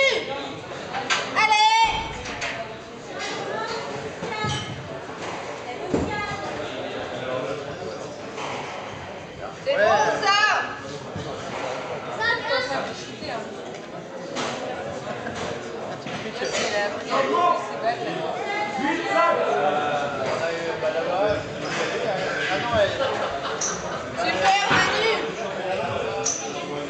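A squash ball smacks off rackets and walls with a sharp echo in a hollow court.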